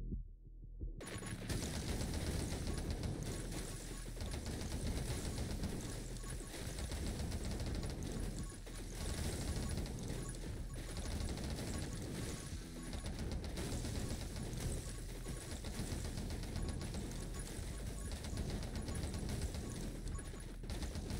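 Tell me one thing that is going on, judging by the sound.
Rapid electronic shots and small bursts crackle without pause.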